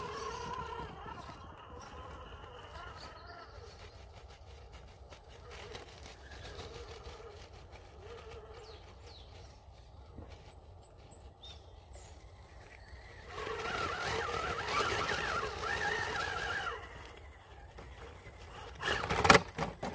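A small electric motor whines.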